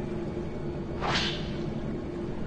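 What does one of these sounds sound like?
A paper page turns with a quick rustle.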